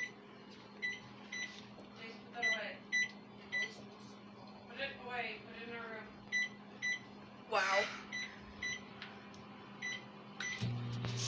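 A microwave oven's keypad beeps as buttons are pressed.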